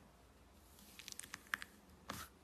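Crunchy cereal pieces crackle softly as fingers press into them.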